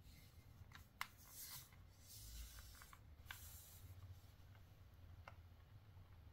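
Buttons on a handheld console click softly.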